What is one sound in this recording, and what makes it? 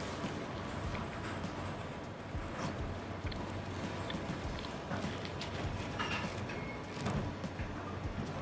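Pizza crust crackles as a man folds a slice.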